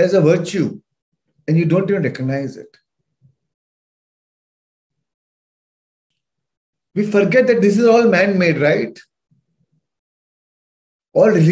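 A man speaks calmly and closely into a microphone, with long pauses.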